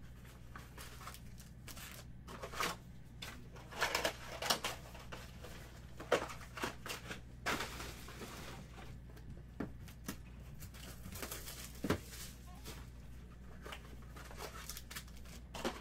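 Foil wrappers crinkle and rustle as hands handle card packs.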